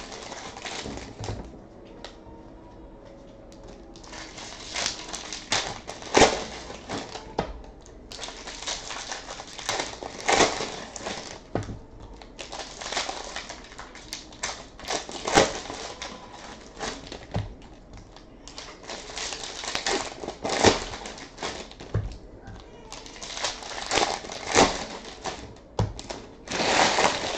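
Plastic wrappers crinkle and tear as packs are opened by hand.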